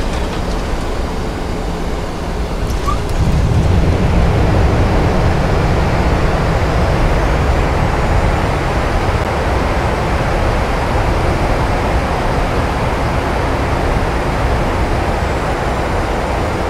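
The jet engines of an airliner roar as it rolls along a runway after landing.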